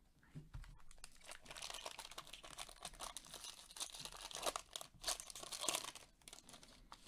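A foil wrapper crinkles and tears as a pack is ripped open.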